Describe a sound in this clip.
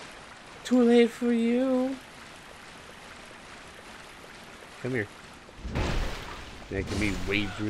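Footsteps wade and splash through water.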